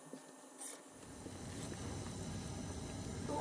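A spatula stirs in a pot.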